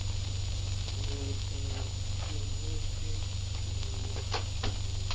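A woman speaks softly.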